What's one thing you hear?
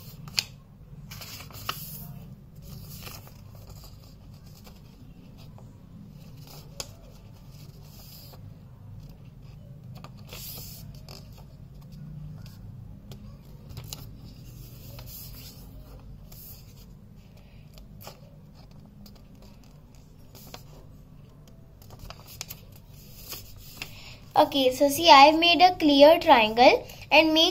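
A young girl talks close by, quietly at first and then louder and more lively.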